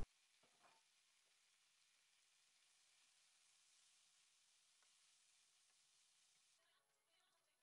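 Vegetables sizzle softly in a hot pan.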